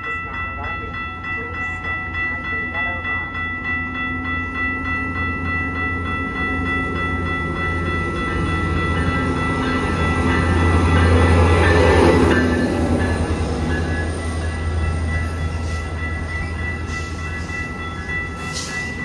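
A diesel locomotive engine rumbles loudly as a train approaches and passes close by.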